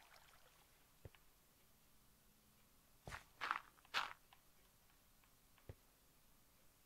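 Footsteps thud on stone in a cave.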